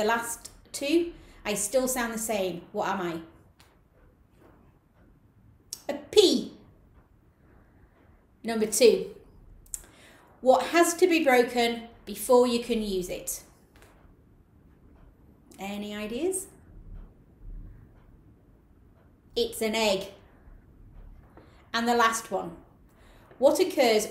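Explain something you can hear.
A middle-aged woman reads aloud slowly and expressively, close to a microphone, with long pauses.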